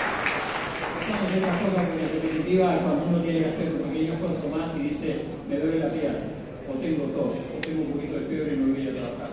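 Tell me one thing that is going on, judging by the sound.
An elderly man speaks calmly through a microphone and loudspeakers in a large hall.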